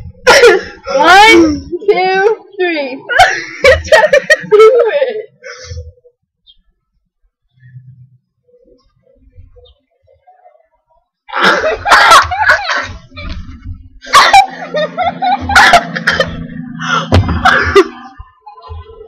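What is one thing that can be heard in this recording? Teenage girls laugh loudly close by.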